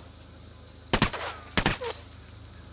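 A rifle fires two sharp shots.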